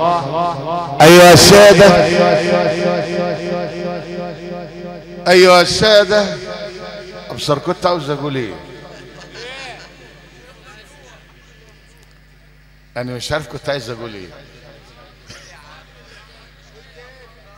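A middle-aged man chants in a long melodic voice through a microphone, with a loud echo.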